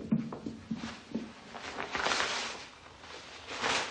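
A plastic sheet rustles as it is lifted.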